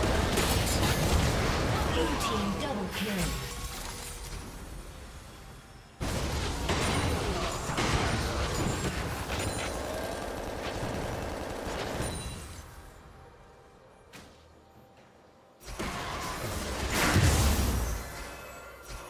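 Spell effects crackle and blast in bursts.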